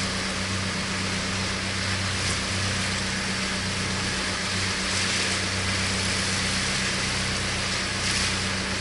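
Choppy water splashes and churns steadily close by.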